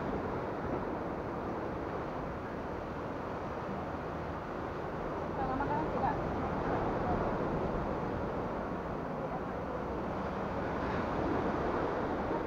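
Small waves wash gently onto a beach in the distance.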